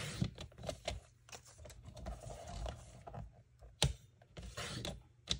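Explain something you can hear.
Paper slides and rustles on a cutting board.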